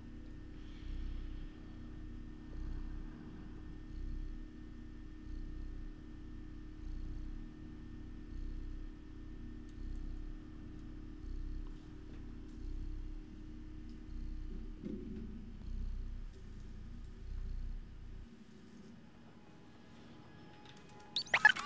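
A man talks quietly into a close microphone.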